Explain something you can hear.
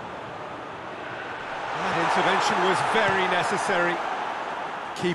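A large stadium crowd roars and swells.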